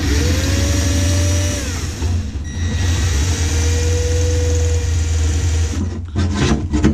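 A cordless drill whirs, speeding up and slowing down in bursts.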